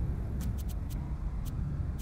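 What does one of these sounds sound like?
Sparks crackle and fizz.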